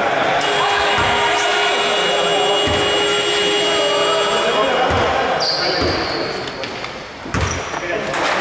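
A basketball bounces with dull thuds on a hard floor in an echoing hall.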